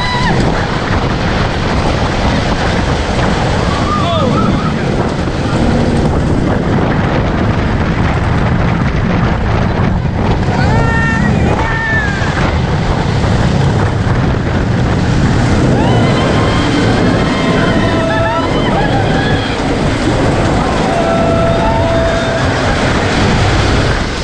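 A roller coaster rumbles and clatters along its track.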